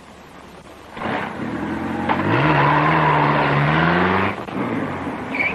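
A car engine revs up as the car drives off.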